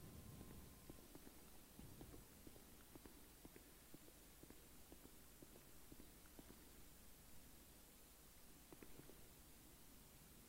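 Footsteps tap on a hard floor at a walking pace.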